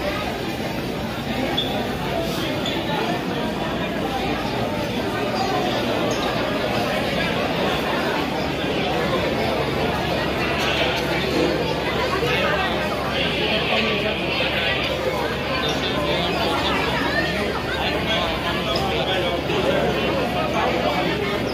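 A large crowd chatters loudly in a busy echoing hall.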